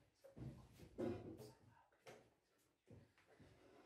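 A chess piece is set down on a board with a light wooden click.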